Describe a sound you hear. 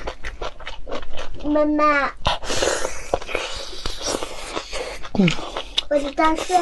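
A young woman bites and crunches on crispy fried food close to a microphone.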